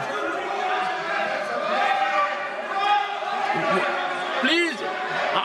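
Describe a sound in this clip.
Many voices murmur and talk over each other in a large hall.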